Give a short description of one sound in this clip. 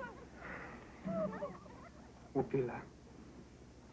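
A man speaks softly and earnestly.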